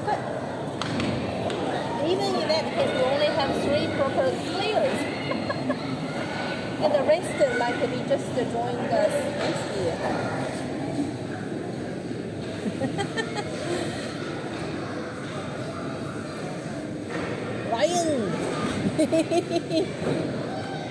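Children's voices chatter and shout, echoing in a large hall.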